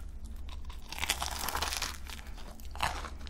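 A young woman bites into a crisp pastry with a loud crunch.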